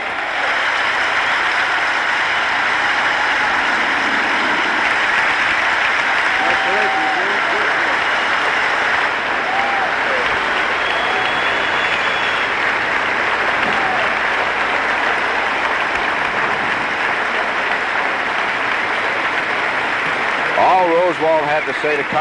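A large crowd cheers and applauds loudly in a wide open stadium.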